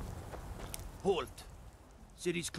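A man calls out sternly, close by.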